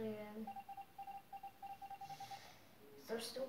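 Short electronic beeps repeat rapidly from a tablet game.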